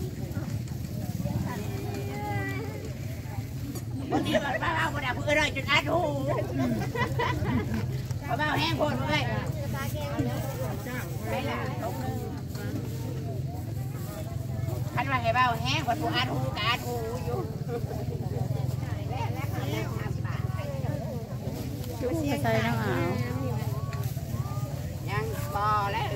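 Men and women chat and call out nearby, outdoors.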